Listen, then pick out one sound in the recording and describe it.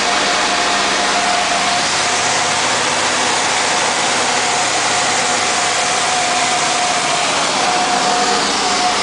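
A B-25 bomber's radial piston engines drone at cruise, heard from inside the cabin.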